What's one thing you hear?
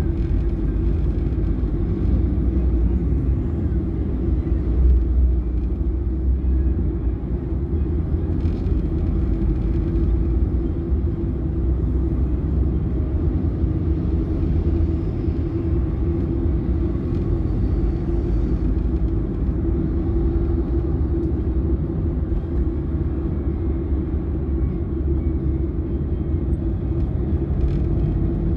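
Traffic rumbles on a busy road.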